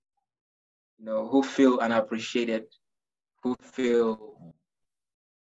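A young man speaks casually into a microphone.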